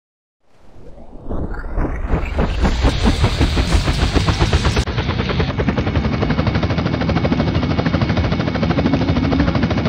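A helicopter's rotor thumps and whirs loudly.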